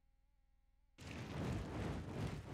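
A stream of fire roars.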